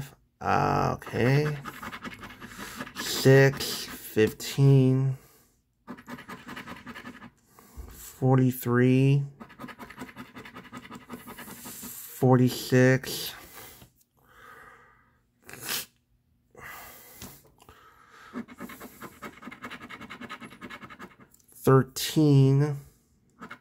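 A coin scratches across a scratch card.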